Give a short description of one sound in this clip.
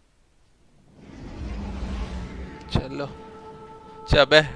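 A spaceship engine rumbles and whooshes past.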